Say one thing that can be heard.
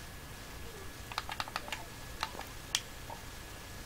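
Soft electronic blips and clicks play in quick bursts.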